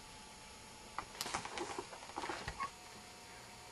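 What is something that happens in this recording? Newspaper pages rustle and crinkle as a cat noses through them.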